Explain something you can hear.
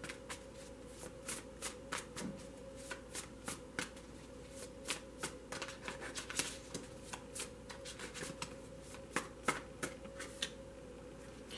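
Cards are shuffled by hand, with quick soft riffling clicks.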